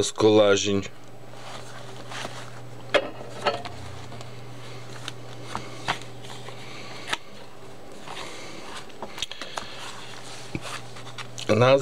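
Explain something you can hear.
Paper pages rustle and flap as they are turned by hand.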